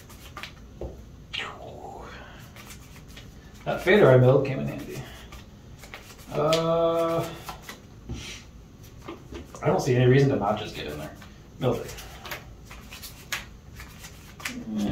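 Playing cards slide and tap on a soft mat.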